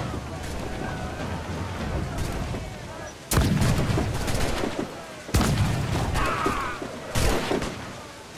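Cannon fire and explosions boom loudly.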